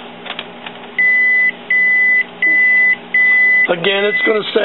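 A printer beeps four times in short, even tones.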